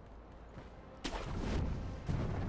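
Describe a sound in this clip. A grappling rope whips and whooshes through the air.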